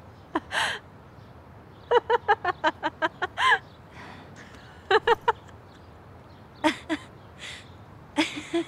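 A second young woman laughs and talks cheerfully.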